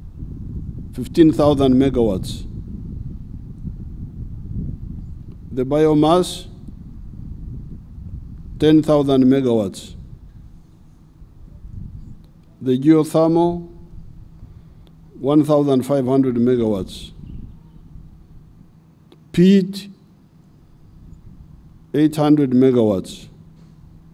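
An elderly man speaks slowly in short phrases through a microphone and loudspeakers, outdoors.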